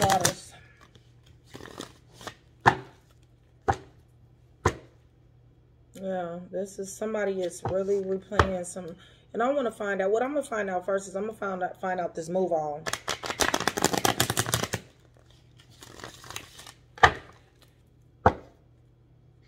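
Playing cards tap and slap on a table now and then.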